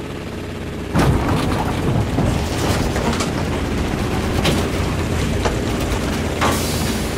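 Wind rushes loudly past a diving plane.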